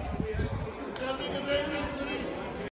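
A crowd of fans chatters nearby.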